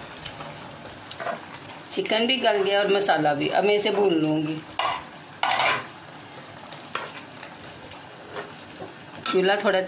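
A metal spoon scrapes and knocks against the inside of a pot.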